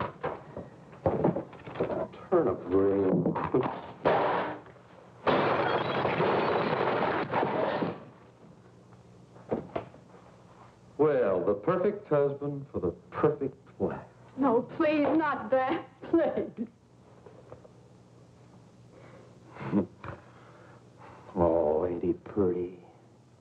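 A man speaks with animation, heard through an old film soundtrack.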